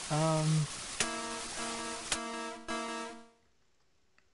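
A game's electronic warning tone buzzes steadily.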